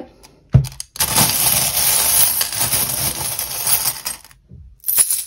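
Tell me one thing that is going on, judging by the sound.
Small metal charms rattle and jingle as a hand stirs them in a glass bowl.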